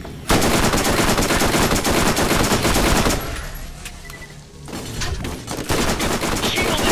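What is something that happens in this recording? A rapid burst of gunfire rattles loudly.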